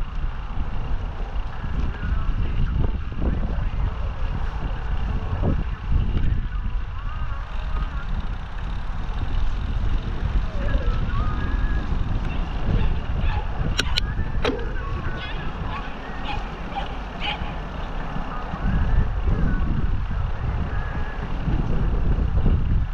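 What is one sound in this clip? Bicycle tyres roll and bump over grass.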